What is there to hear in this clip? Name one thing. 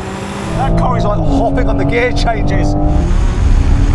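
A man talks with animation over the engine noise.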